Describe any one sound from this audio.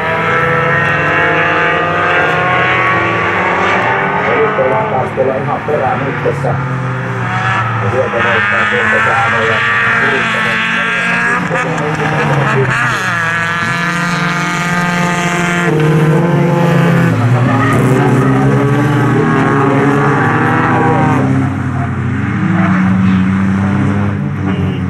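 Racing car engines roar and rev loudly, rising and falling in pitch as the cars speed past.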